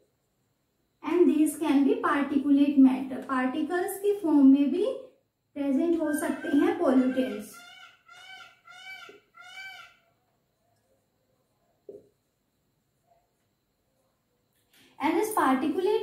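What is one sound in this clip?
A young woman speaks calmly and clearly, close by, as if explaining.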